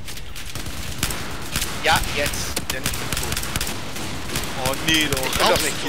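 A rifle fires repeated single shots.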